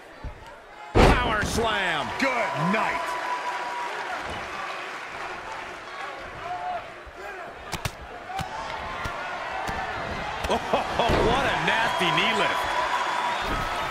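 A large crowd cheers and roars in a big arena.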